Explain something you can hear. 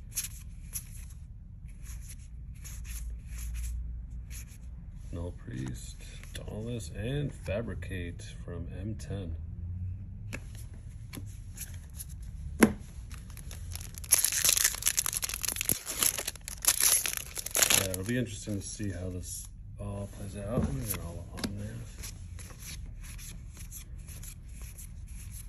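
Playing cards slide and flick against each other close by.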